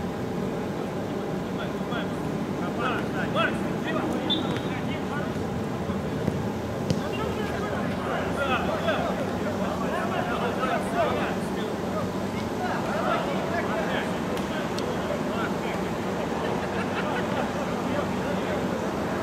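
Spectators nearby chatter.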